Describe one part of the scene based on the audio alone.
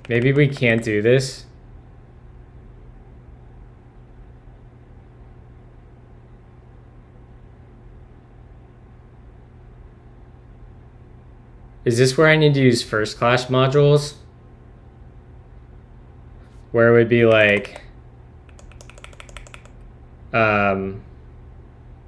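A young man speaks calmly and casually into a close microphone, in short bursts with pauses.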